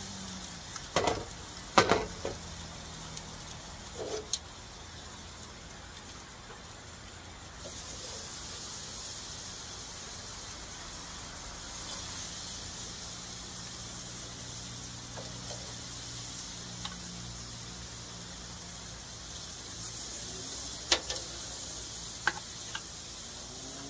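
Metal tongs clack and scrape against a grill.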